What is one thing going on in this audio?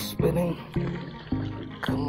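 A fish splashes at the surface of the water close by.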